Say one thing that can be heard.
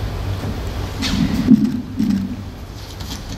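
A second man speaks briefly into a microphone.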